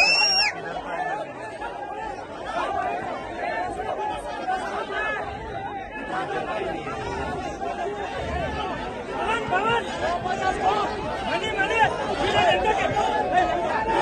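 A crowd of men shouts and cheers loudly nearby.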